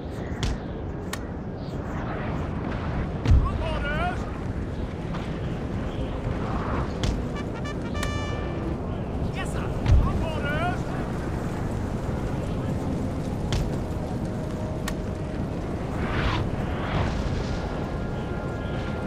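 Battle noise rumbles steadily in the distance.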